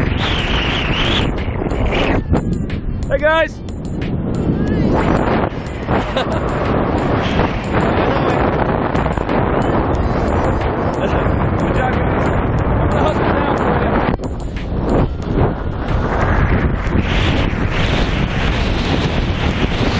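Strong wind rushes and buffets loudly against a microphone.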